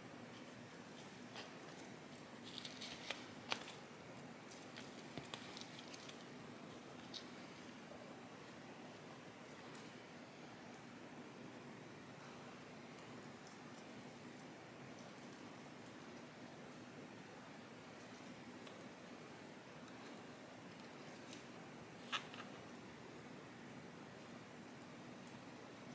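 Leaves rustle softly as fingers handle a potted plant.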